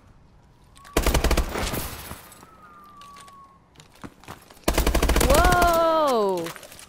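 Rapid gunshots fire in short bursts.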